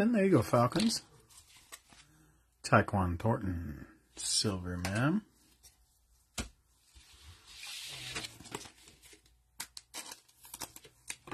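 Cards rustle and tap softly as hands handle them.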